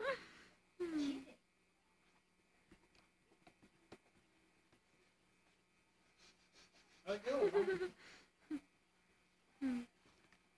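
A baby squeals and babbles close by.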